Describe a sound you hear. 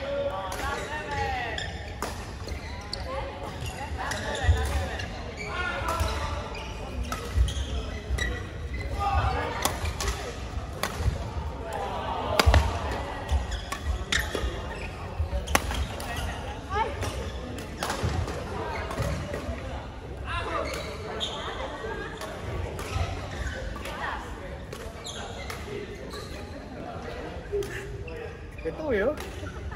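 Young women chat and call out to each other.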